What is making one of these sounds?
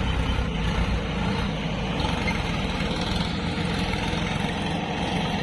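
A diesel tractor engine chugs steadily close by.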